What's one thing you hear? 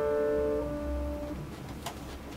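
A piano chord rings out and fades away.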